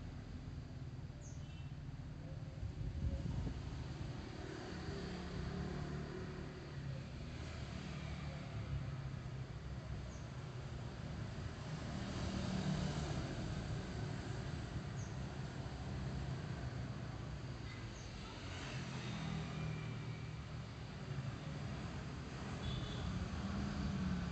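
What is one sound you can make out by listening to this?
A motorbike engine hums steadily up close while riding.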